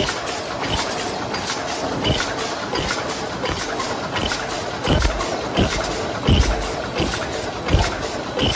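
Metal parts knock and thud in a regular rhythm.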